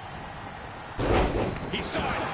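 A body slams onto a wrestling mat with a heavy thud.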